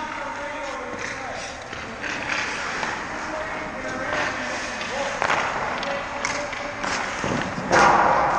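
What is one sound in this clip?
Ice skate blades scrape and carve across the ice in an echoing hall.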